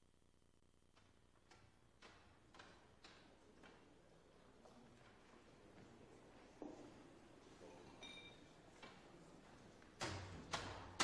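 Footsteps and shuffling sound across a hard floor in a large room.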